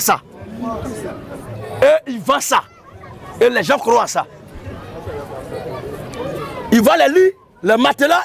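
A man preaches loudly and with animation through a lapel microphone, outdoors.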